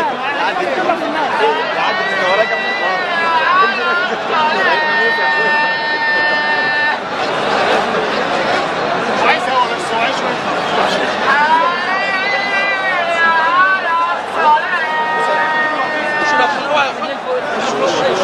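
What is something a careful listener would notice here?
A large crowd of men chants loudly outdoors.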